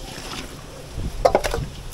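A metal bowl knocks down onto a concrete ledge.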